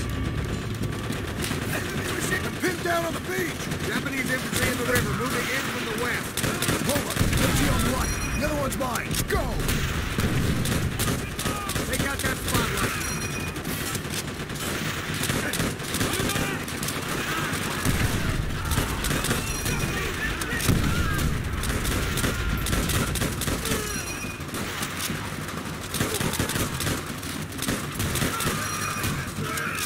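Rifles fire in rapid bursts, with sharp cracks and booms.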